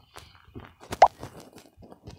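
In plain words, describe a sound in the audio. A short game click sounds.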